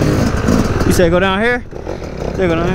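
A dirt bike engine revs up sharply in bursts.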